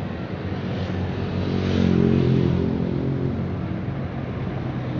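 A bus roars past close by.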